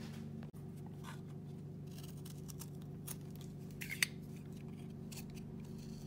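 A knife blade shaves and scrapes wood.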